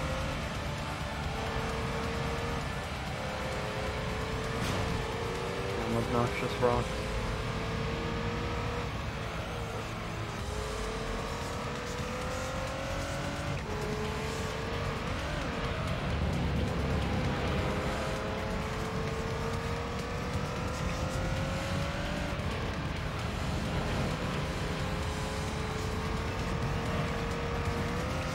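A racing car engine revs and shifts gears.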